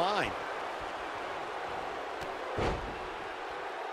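A body thuds onto the ring mat.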